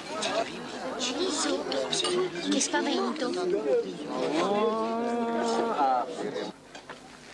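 A lively group of men and women laugh and chatter up close.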